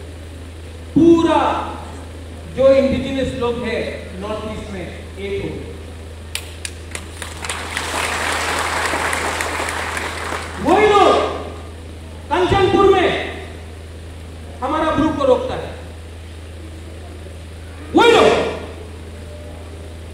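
A man shouts rousingly into a microphone, echoing through a large hall.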